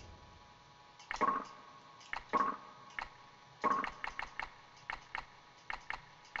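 Short menu beeps and clicks sound in quick succession.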